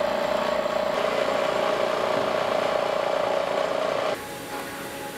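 A milling machine cuts metal with a steady, high whine.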